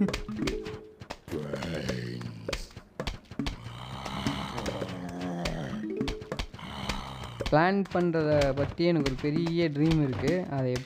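Bouncy game music plays.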